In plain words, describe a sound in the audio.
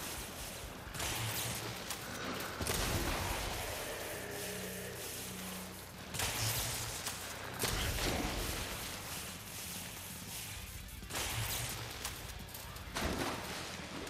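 Gunshots fire loudly, each with a booming blast.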